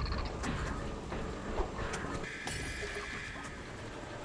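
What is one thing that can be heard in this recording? A gun turret fires a rapid burst of shots.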